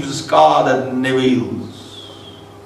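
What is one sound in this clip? A middle-aged man speaks with emphasis into a microphone.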